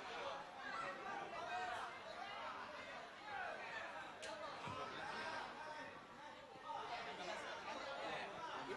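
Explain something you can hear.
A group of men talk and laugh loudly close by.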